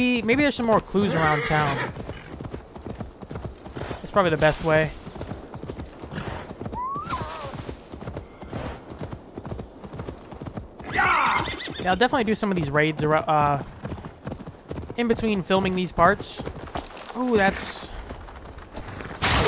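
A horse gallops, its hooves thudding on grass.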